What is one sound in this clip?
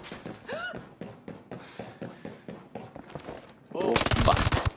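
Footsteps hurry across a hard floor.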